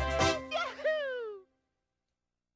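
A video game plays a bright, triumphant jingle.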